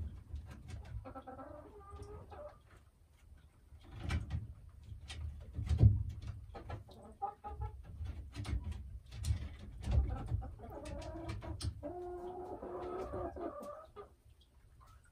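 A hen clucks and croons softly close by.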